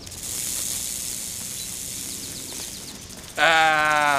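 A rattlesnake rattles with a steady, hissing buzz.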